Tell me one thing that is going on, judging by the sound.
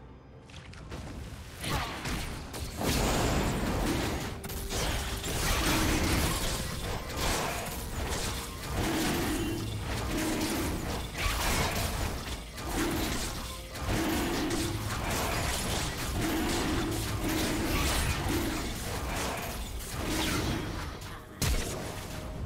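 Game fight sound effects clash, whoosh and crackle.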